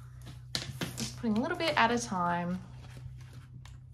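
A plastic binder page rustles as it turns.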